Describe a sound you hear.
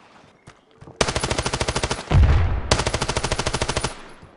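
Rapid bursts of automatic gunfire ring out loudly.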